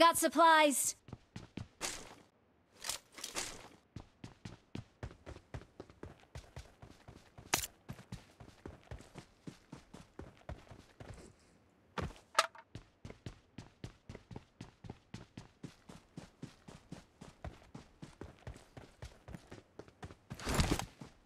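Quick footsteps shuffle over ground and grass.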